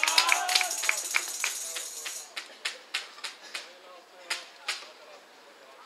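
Players clap their hands together in rhythm outdoors.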